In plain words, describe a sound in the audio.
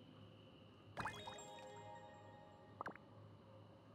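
A bright chime rings out as a reward is collected in a game menu.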